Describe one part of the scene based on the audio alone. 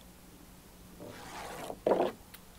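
A small plastic toy slides softly down a plastic slide.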